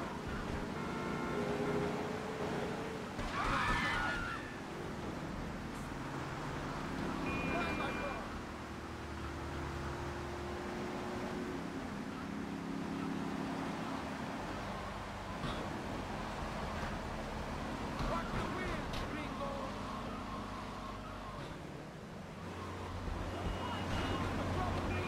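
A car engine roars as a car speeds along.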